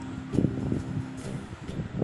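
A spatula scrapes and stirs vegetables in a pan.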